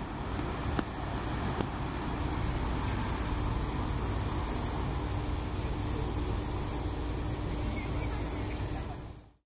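A steam locomotive rumbles slowly along the rails.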